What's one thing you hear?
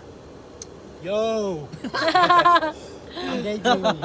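Young men and a young woman laugh loudly up close.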